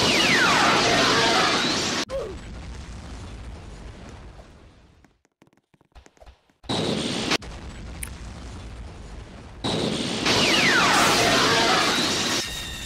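A fiery energy blast roars and crackles.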